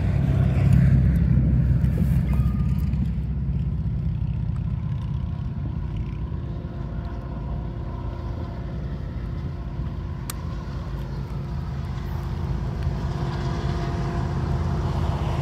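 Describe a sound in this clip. A distant freight train rumbles as it slowly approaches.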